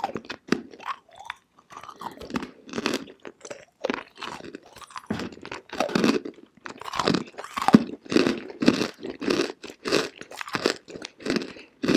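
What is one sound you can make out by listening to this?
A young woman makes soft, wet mouth sounds close to a microphone.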